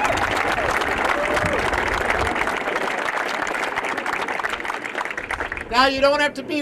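A crowd applauds and cheers outdoors.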